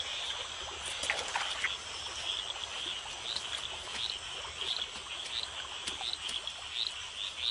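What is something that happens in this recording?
Leaves rustle as a large cat moves through the undergrowth.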